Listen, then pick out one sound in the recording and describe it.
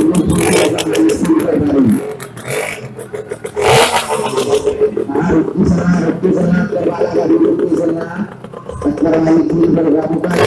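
A motorcycle engine roars and revs inside a large echoing drum.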